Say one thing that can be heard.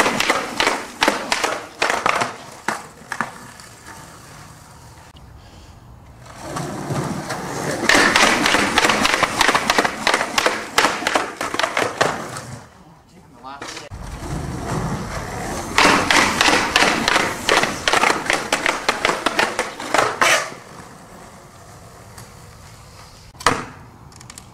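A skateboard clacks as it lands on concrete.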